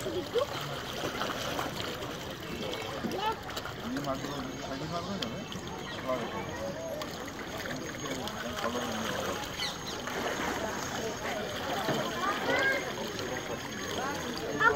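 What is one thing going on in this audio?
A crowd of men and women chatter outdoors over open water.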